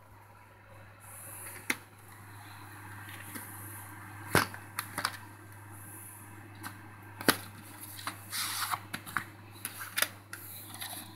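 Plastic tape cases clack and rattle as a hand handles them.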